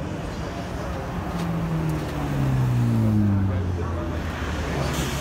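A second sports car engine roars past, its pitch dropping as it goes by.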